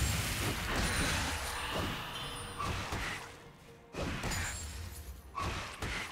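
Video game combat effects clash and crackle in quick bursts.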